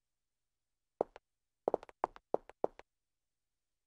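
High heels click on pavement with quick steps.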